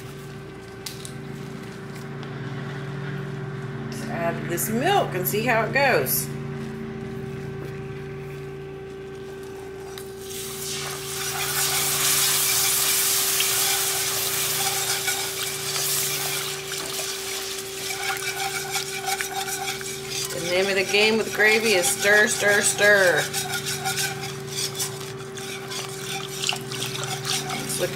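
A metal whisk scrapes and clicks against a pan.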